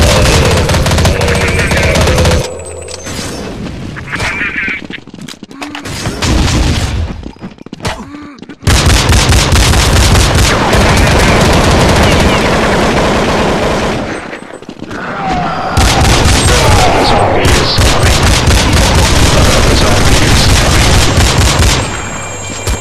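Pistols fire in rapid, loud bursts.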